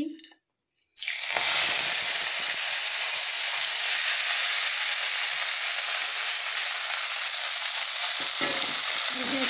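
Greens sizzle and hiss loudly in a hot pan.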